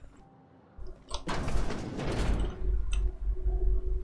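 A metal door slides open with a whoosh.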